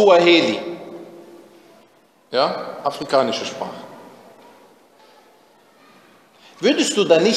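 A man recites in a melodic chanting voice with a long echo.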